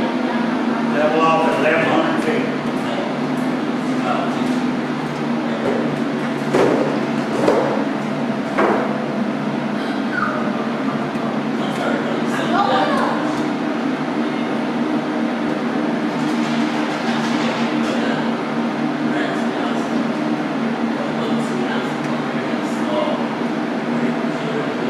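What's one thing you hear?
A man speaks in a room, a few steps away.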